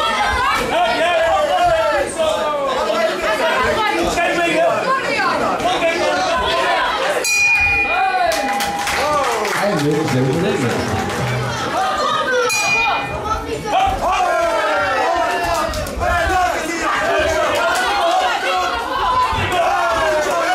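A crowd of spectators shouts and cheers in a hall.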